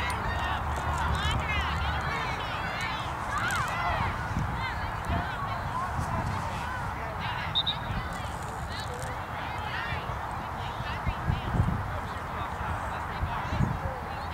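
Women and girls nearby talk and call out excitedly.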